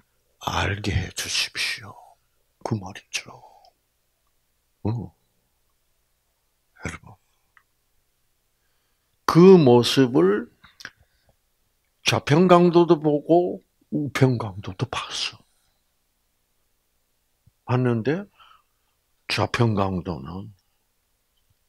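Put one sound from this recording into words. An elderly man speaks with animation through a microphone, in bursts with pauses.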